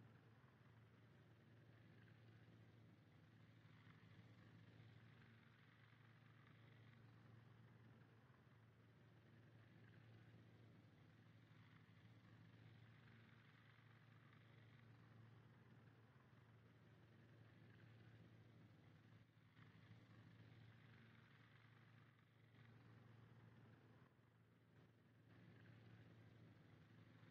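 Propeller plane engines drone steadily in a low, continuous hum.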